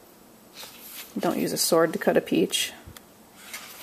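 Paper pages rustle as a book's page is turned.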